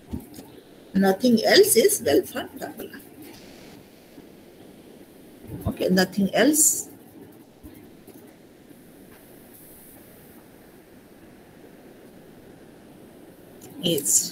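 A young woman speaks calmly through an online call, in short phrases.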